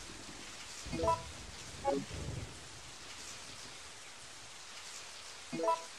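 A video game menu plays short electronic chimes.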